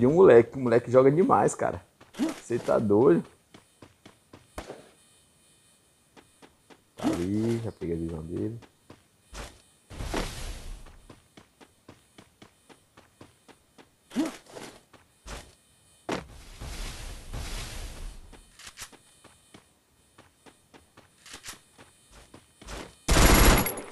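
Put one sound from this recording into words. Footsteps run quickly over ground.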